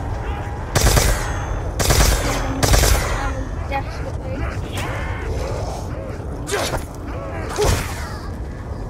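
A gun fires loud, sharp shots in quick bursts.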